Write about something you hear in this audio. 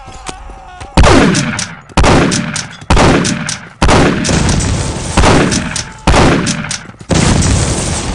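A shotgun fires several loud blasts in quick succession.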